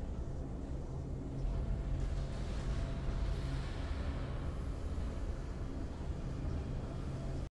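Triumphant game music plays steadily with a deep, droning low end.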